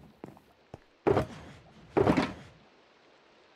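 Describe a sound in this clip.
A box lid opens with a muffled thud.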